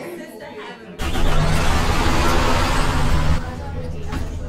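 A bus door hisses with a loud burst of air and closes.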